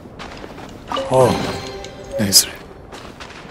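A treasure chest opens with a bright, sweeping magical flourish.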